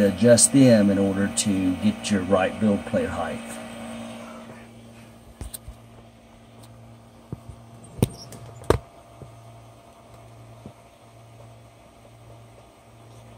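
A machine's motor hums steadily and quietly.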